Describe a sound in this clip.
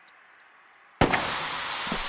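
A starting pistol fires once.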